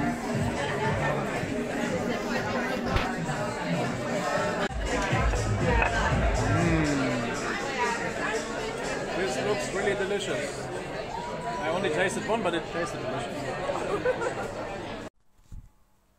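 A crowd chatters loudly in a busy, echoing room.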